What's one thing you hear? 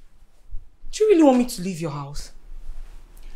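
A young woman speaks tensely nearby.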